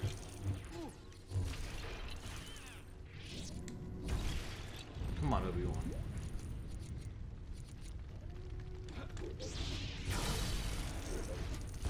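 Lightsabers hum and swing with buzzing whooshes.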